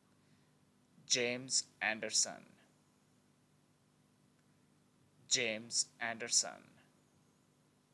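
A young man speaks clearly and slowly into a microphone, in two short bursts with pauses.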